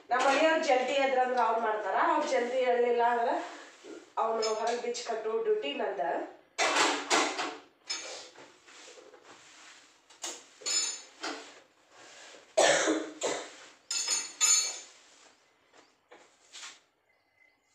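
Metal dishes clink and clatter as they are washed.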